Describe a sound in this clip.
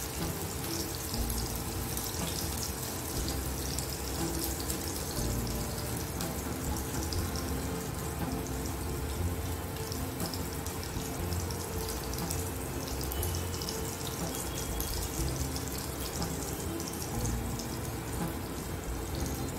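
Meat patties sizzle and crackle steadily in hot oil.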